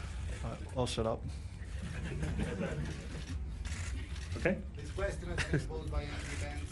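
Several men laugh together into microphones.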